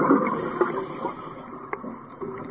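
Scuba bubbles rush and gurgle underwater.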